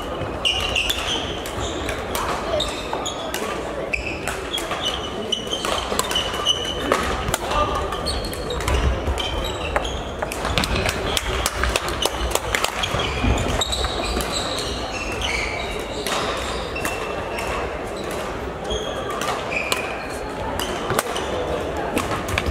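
Shuttlecocks are struck with rackets in sharp pops throughout a large echoing hall.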